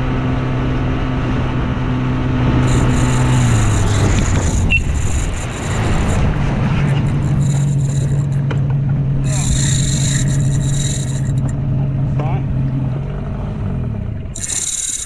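An outboard motor drones steadily nearby.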